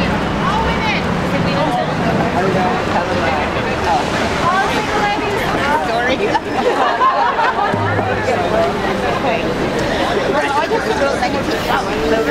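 A hand drum is beaten with a stick.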